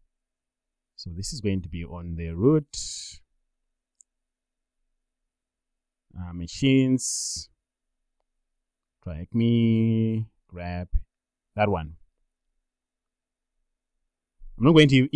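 A man talks calmly into a close microphone, in short bursts with pauses.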